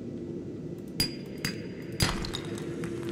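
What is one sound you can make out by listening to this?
Rock cracks and breaks with sharp knocks.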